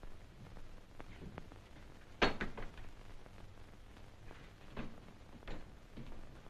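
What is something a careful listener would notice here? A door handle rattles.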